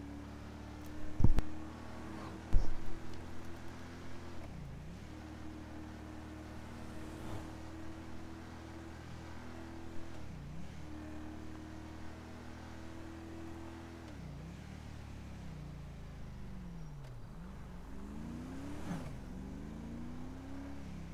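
A car engine hums steadily, dropping in pitch with each gear change and revving up again.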